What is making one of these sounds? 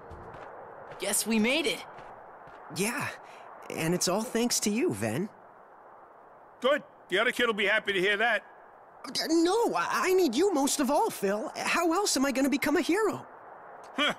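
A young man speaks warmly.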